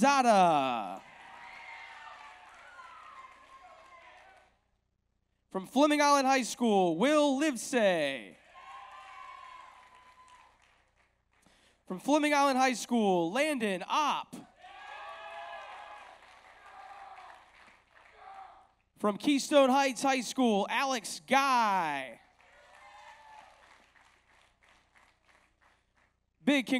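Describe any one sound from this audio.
An audience cheers and claps after each name.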